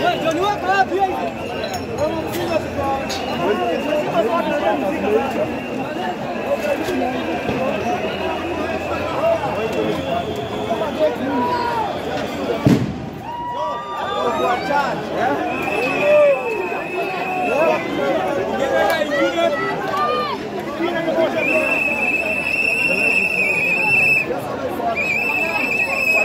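A large crowd chatters and shouts outdoors.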